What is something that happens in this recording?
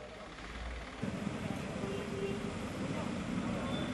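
Water gushes from a hose onto the street.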